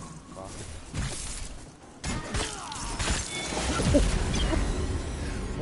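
Blows clash and thud in a loud fight.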